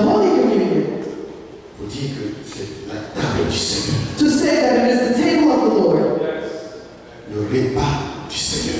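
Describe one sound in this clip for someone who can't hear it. A man speaks with animation through a microphone in an echoing room.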